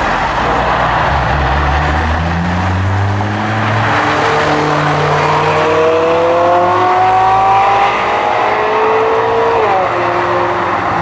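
A sports car engine roars loudly as the car accelerates away, its pitch rising through the gears.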